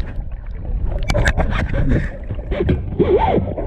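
Water splashes near the surface.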